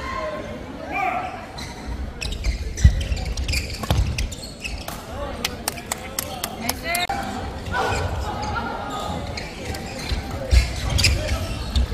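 Rackets strike a shuttlecock in quick rallies in an echoing hall.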